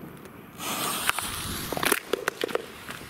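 A firework fizzes and hisses as it throws off sparks.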